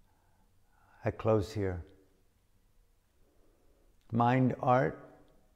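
An elderly man speaks calmly and close to a microphone in short bursts.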